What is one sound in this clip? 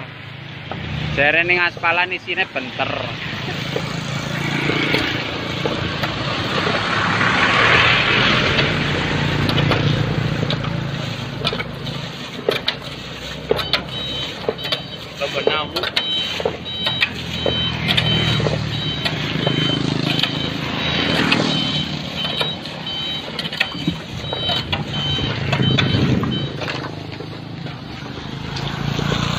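A truck engine idles with a low rumble nearby.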